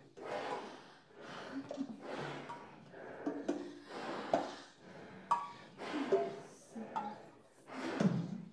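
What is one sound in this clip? A brass horn blows short, breathy, airy bursts with brief low notes, close by.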